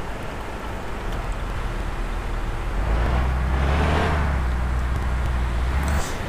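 A bus engine rumbles louder as the bus pulls away.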